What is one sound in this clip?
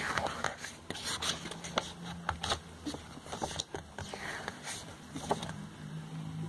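Glossy magazine pages rustle and flip close by.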